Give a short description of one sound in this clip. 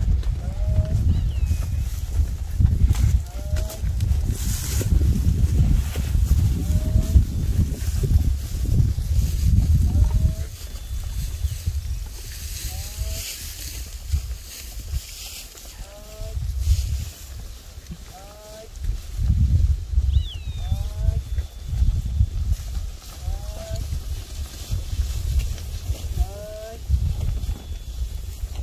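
Wind gusts outdoors, buffeting loudly in bursts.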